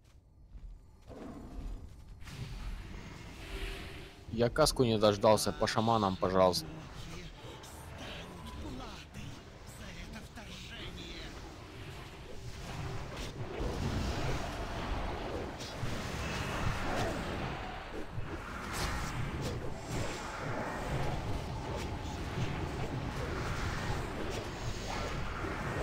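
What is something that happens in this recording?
Spells and battle effects crackle and boom in a game fight.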